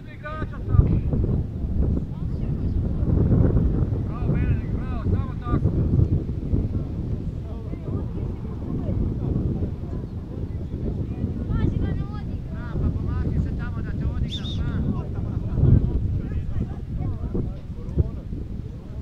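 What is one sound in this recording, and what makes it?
Players shout to each other across a field in the distance.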